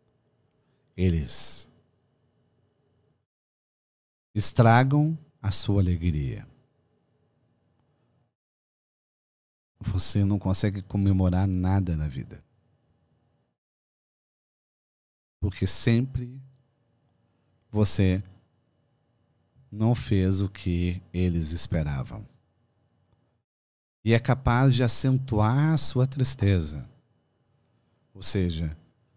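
A middle-aged man talks calmly into a close microphone, in short bursts with pauses.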